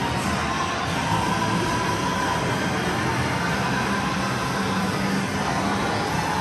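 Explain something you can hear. Dense arcade noise fills the air.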